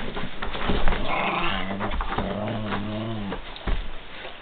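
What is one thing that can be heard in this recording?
A dog growls and grumbles playfully up close.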